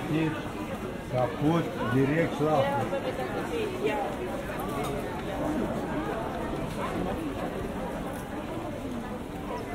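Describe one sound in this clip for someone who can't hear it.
Footsteps shuffle on paving stones.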